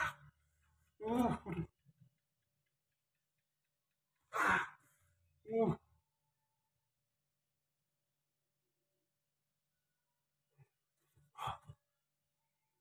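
A man groans and grunts in pain close by.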